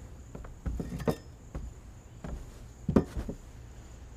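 A heavy object is set down on a wooden table with a knock.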